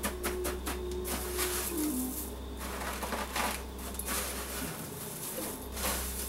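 A hand presses and pats food into crunchy breadcrumbs.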